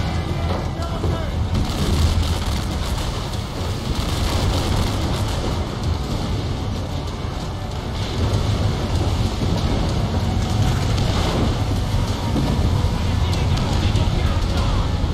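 Rough waves surge and crash loudly.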